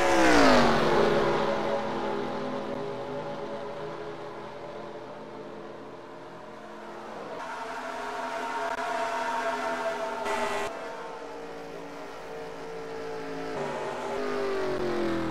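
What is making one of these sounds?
A single race car engine drones steadily, rising and falling in pitch.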